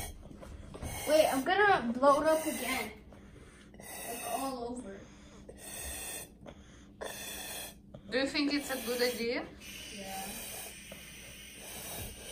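A little girl blows into a balloon with puffs of breath.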